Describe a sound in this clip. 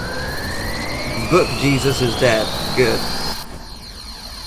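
A magical energy charge hums and rises in pitch.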